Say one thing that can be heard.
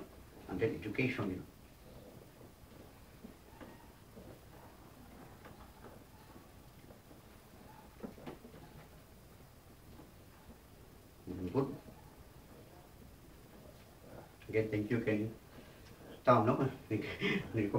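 A man speaks calmly nearby in short bursts.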